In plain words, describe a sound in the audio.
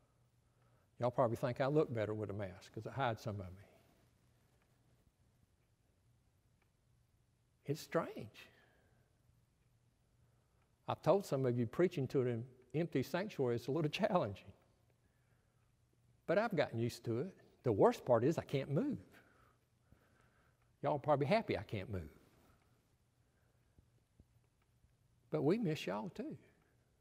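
An older man speaks calmly and slowly into a microphone, with pauses between phrases.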